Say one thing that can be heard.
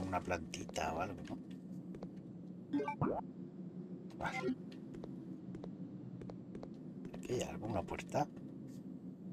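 A man speaks with animation, close to a headset microphone.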